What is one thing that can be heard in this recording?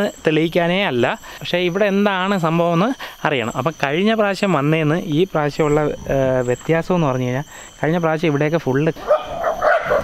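A man sings loudly and passionately close by.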